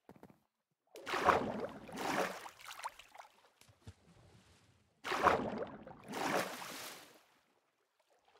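Water splashes loudly in short bursts.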